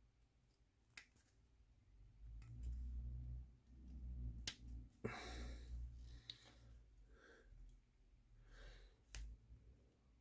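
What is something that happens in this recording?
Plastic parts click and tap lightly against each other.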